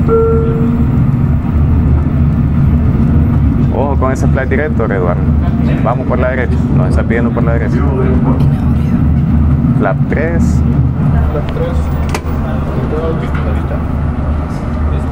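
A loud, steady low engine rumble drones throughout.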